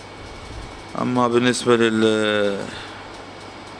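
A man chants slowly in a deep voice into a microphone.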